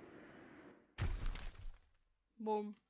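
A heavy thud sounds as a figure hits the ground.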